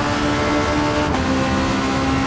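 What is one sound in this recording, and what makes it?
A racing car engine drops in pitch as it shifts up a gear.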